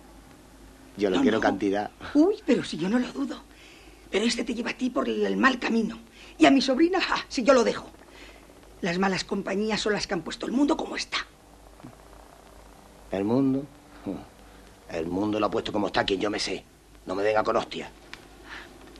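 A middle-aged woman talks quietly nearby.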